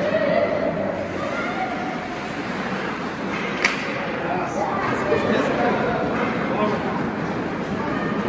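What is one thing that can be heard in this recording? Skate blades scrape and hiss across ice in a large echoing rink.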